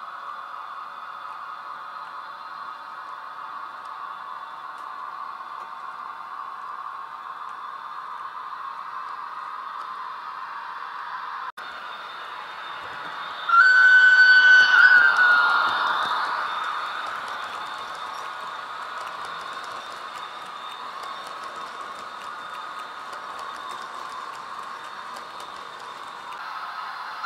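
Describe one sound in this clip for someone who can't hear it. A model train rattles steadily along its track.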